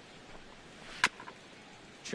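A baseball smacks sharply into a mitt once.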